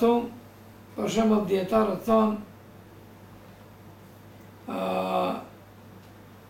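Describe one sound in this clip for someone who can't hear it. An elderly man reads aloud slowly and calmly, close by, with pauses.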